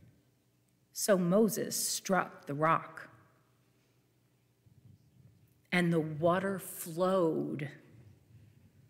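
A second woman speaks calmly through a microphone.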